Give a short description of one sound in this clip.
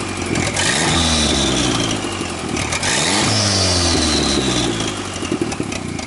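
A turbo whistles and hisses as a car engine revs.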